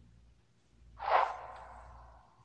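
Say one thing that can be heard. A game chest pops open with a bright whoosh.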